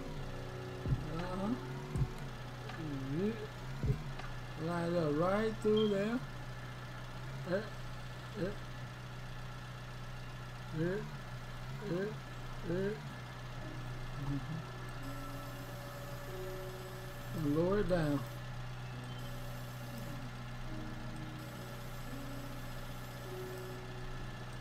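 A loader's diesel engine hums steadily.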